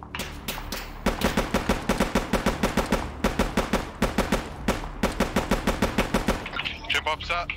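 A rifle fires a rapid series of loud shots.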